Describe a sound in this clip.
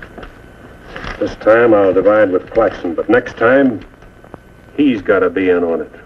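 A man speaks firmly and loudly nearby.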